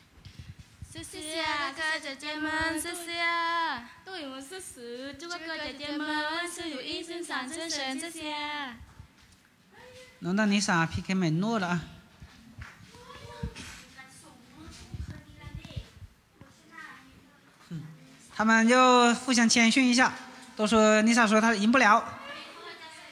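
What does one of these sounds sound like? A young woman sings through a microphone.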